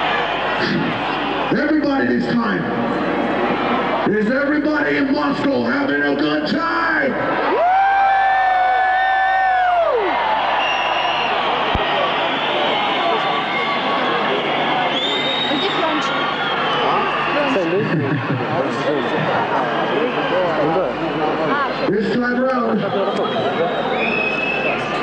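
A large crowd cheers and whistles loudly outdoors.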